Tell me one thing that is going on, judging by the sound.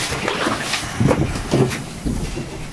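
Dishes and utensils clatter nearby.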